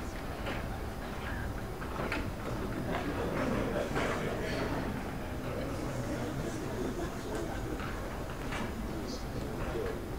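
Footsteps thud on a hollow stage.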